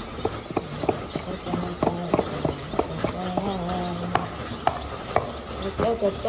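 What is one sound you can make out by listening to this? A cleaver chops rapidly on a wooden board.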